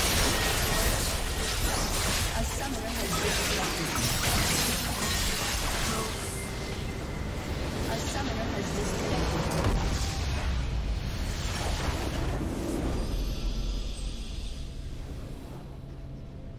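Magic blasts and combat clashes crackle loudly and rapidly.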